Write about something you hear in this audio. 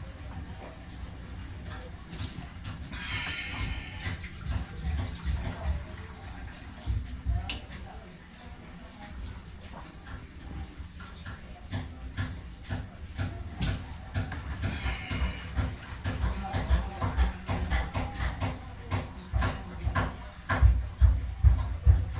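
Sharp knocks and taps sound close by, on and off.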